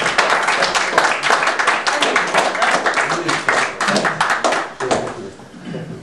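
A small group of people applauds.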